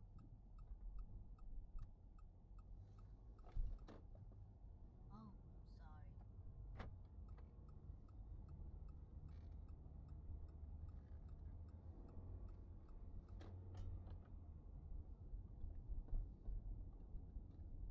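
A car's engine hums and its tyres rumble on the road at a steady pace.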